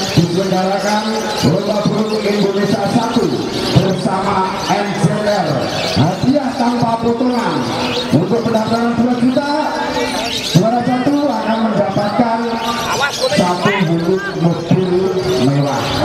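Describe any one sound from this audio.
Small parrots chirp and screech shrilly nearby.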